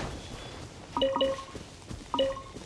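Game chimes ring out briefly.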